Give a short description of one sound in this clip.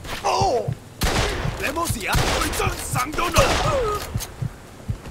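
Shotgun blasts boom in quick succession.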